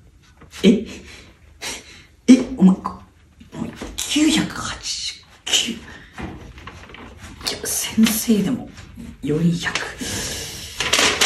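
A young man reads out loud with animation, close by.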